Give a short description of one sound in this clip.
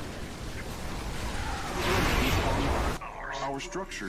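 Electric zaps and explosions crackle loudly in a battle.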